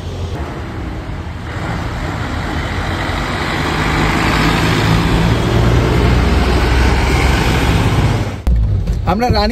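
A bus engine rumbles and grows louder as the bus passes close by.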